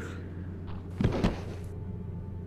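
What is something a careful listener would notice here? A body drops heavily to the ground.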